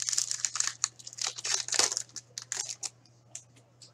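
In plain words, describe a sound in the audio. A foil wrapper crinkles and tears as hands open a pack of cards.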